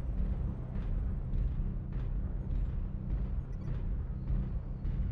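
A heavy engine rumbles low and steady.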